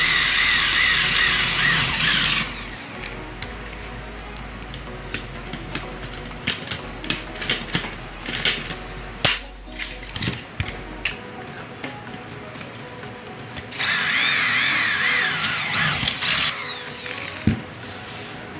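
An electric drill whirs loudly as it bores into metal.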